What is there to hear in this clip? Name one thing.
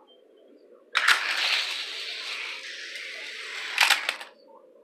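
A toy car rolls fast along a plastic track.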